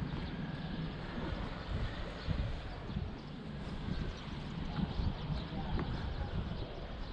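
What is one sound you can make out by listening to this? Wind buffets the microphone outdoors in gusts.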